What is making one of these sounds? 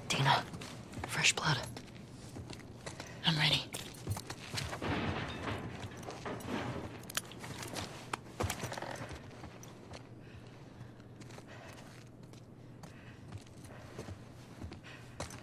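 Footsteps creak on wooden floors and stairs.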